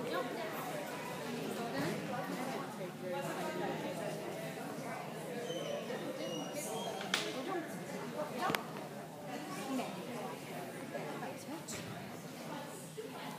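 A woman calls out to a dog in a large echoing hall.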